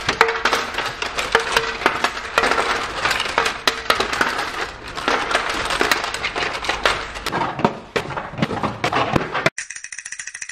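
Small plastic bricks rattle and clatter as hands rummage through them.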